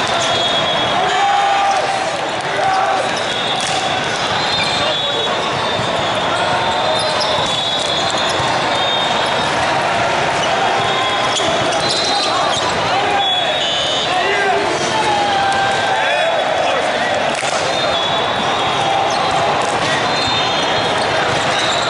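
A volleyball is struck with a hand with a sharp slap.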